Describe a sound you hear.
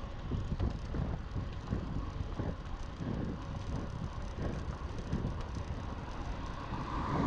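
Wind rushes loudly past outdoors.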